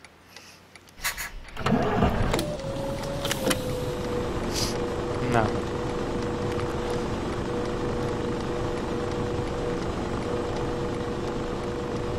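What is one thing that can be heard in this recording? A bus engine starts and hums steadily.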